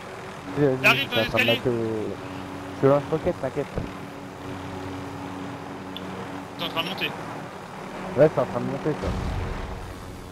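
A helicopter's rotor thrums in flight.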